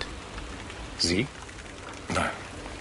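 A second older man replies briefly, close by.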